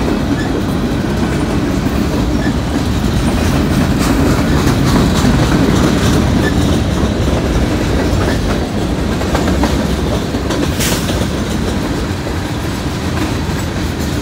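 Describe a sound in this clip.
Steel wheels clack and squeal on the rails.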